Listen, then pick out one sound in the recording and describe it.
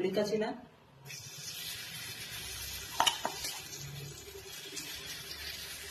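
Batter sizzles steadily on a hot pan.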